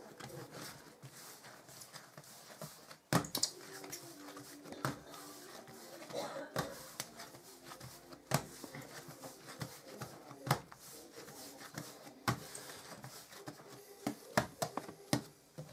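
Hands knead and slap soft dough on a countertop, with dull thuds.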